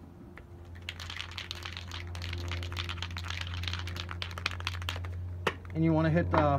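A spray can rattles as it is shaken.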